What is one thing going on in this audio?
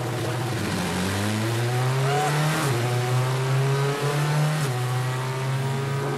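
A rally car engine roars loudly from inside the cabin, shifting pitch as gears change.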